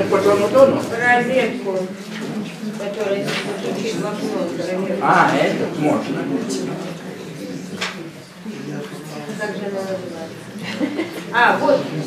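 An elderly man reads aloud calmly.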